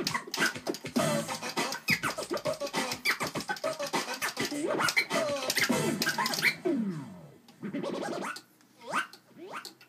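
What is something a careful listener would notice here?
A record is scratched back and forth on a turntable in quick bursts.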